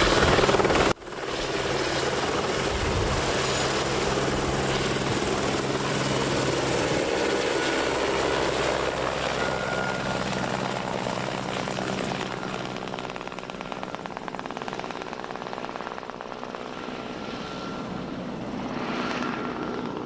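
A helicopter's rotor thuds steadily overhead, then slowly fades as the helicopter flies away.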